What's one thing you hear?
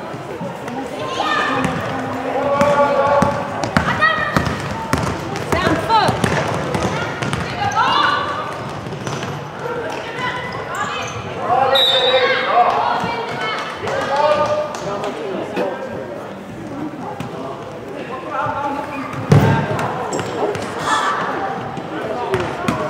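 Young women shout and call out to each other across the hall.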